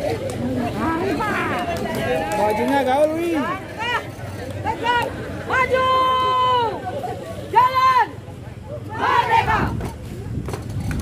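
A man shouts marching commands loudly outdoors.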